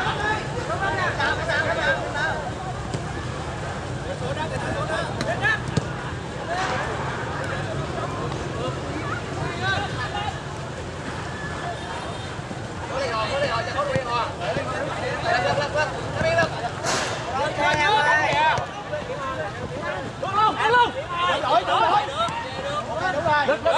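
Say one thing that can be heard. Young men shout to each other during a game outdoors.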